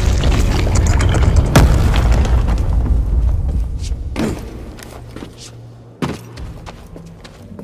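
Footsteps scuff and thud on stone.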